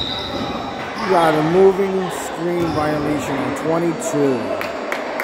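A man shouts loudly across the gym.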